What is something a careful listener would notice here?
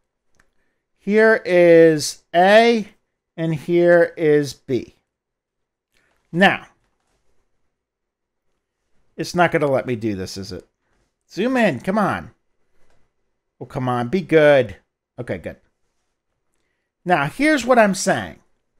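A middle-aged man explains calmly, lecturing close to a headset microphone.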